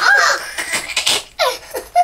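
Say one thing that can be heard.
A young boy laughs.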